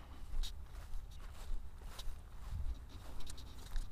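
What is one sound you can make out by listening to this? A small drone thuds into grass.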